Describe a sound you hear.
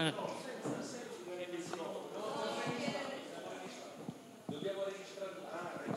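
A middle-aged man speaks into a microphone over loudspeakers.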